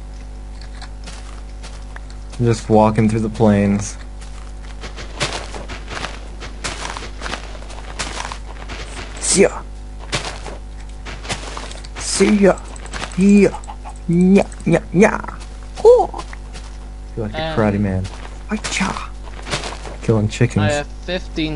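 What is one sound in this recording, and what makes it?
Leafy blocks crunch softly as they are broken, again and again.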